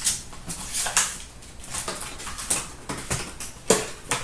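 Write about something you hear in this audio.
Trading cards flick and slide against each other.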